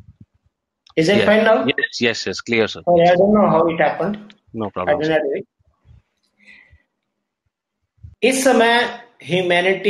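An older man speaks calmly and at length over an online call.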